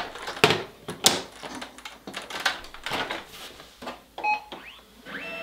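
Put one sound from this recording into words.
A scanner lid thumps and clacks shut.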